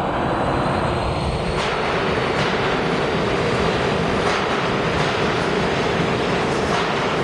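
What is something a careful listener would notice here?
A subway train rushes past with a loud, steady roar in an echoing tunnel.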